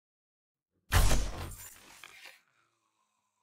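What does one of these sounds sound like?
An arrow strikes its target.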